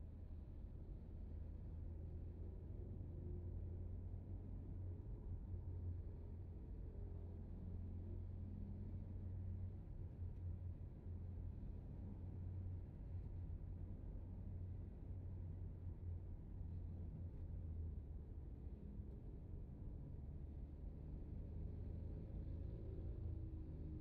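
A car engine hums steadily from inside the car as it drives.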